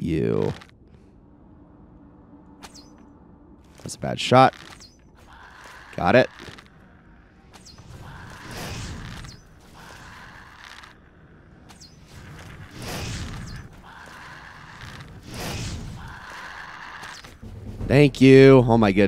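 A bowstring twangs sharply as arrows are shot, again and again.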